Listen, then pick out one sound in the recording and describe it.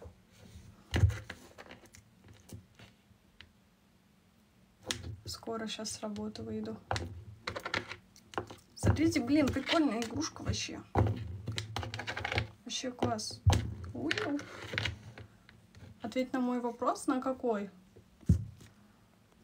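Light knocks and taps sound on a table.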